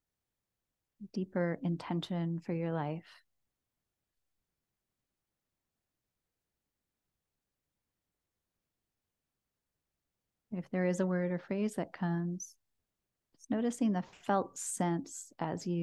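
A woman speaks softly and calmly into a close microphone, with long pauses.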